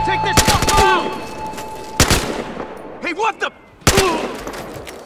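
A rifle fires sharp, loud single shots close by.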